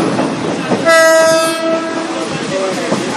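A train horn blows once.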